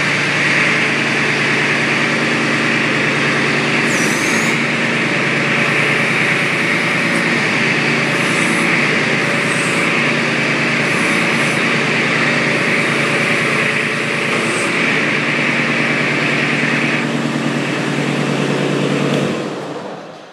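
A machine's engine runs with a steady loud drone, then cuts off.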